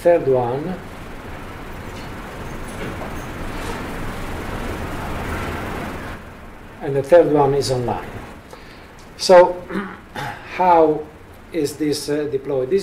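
A man speaks calmly into a microphone, heard over a loudspeaker in a room.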